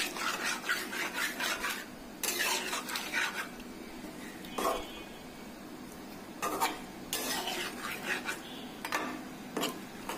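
A metal spatula scrapes and stirs thick stew in a pot.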